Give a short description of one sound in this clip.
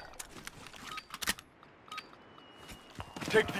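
Short electronic beeps tick off a countdown, about once a second.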